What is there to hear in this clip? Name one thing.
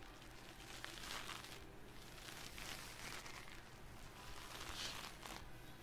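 Fingers rub and scratch softly on a microphone's foam cover, very close.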